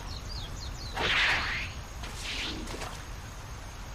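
A small splash sounds as something drops into water.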